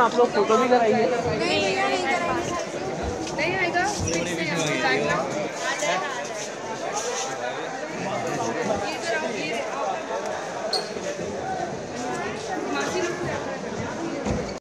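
A crowd of people chatters outdoors all around.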